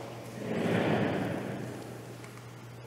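Pages of a book rustle as they are turned.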